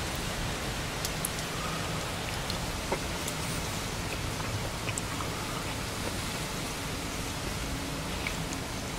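A man chews food close to a clip-on microphone.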